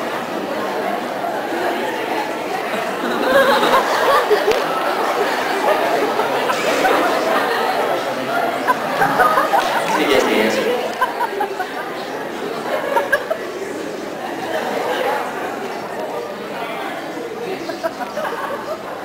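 An audience murmurs and chatters nearby.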